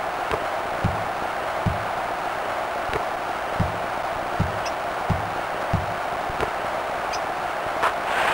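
A large crowd murmurs steadily in an arena.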